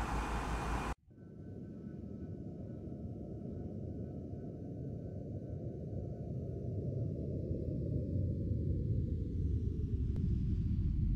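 A jet airliner's engines rumble low and grow louder as it flies past.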